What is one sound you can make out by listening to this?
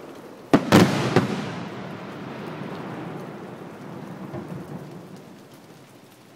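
Crackling fireworks sizzle and pop after a burst.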